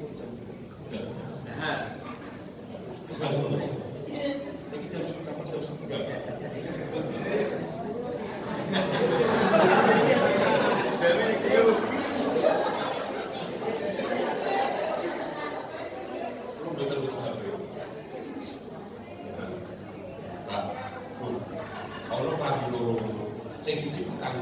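A man speaks with animation through a microphone and loudspeakers, echoing in a large hall.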